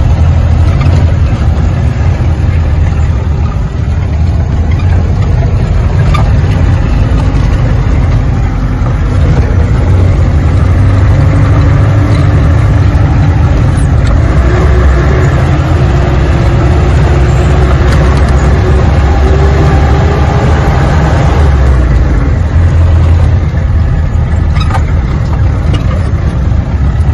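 A vehicle's engine rumbles steadily as it drives along a rough dirt track.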